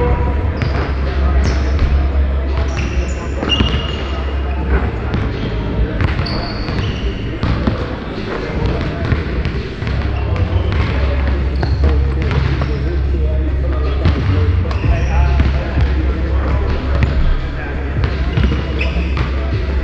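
Basketballs bounce and thud on a hardwood floor in a large echoing gym.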